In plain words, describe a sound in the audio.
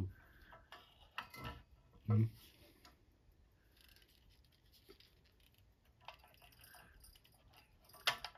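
A wooden phone handset knocks and rattles as a hand handles it.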